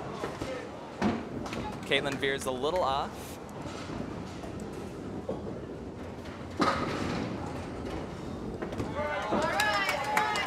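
Bowling pins clatter as a ball strikes them.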